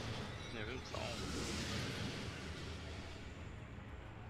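A magic spell whooshes and shimmers.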